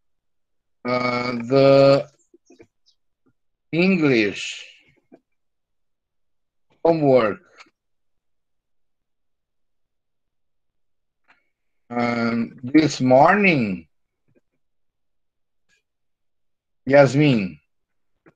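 A middle-aged man speaks slowly and clearly in short phrases through an online call.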